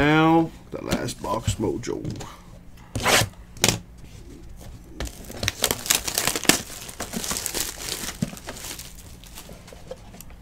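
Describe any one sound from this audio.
A cardboard box is turned and tapped in someone's hands.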